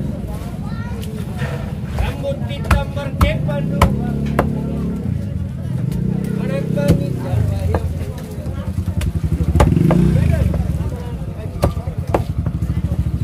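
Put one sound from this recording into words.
A heavy knife chops through fish on a wooden block with sharp thuds.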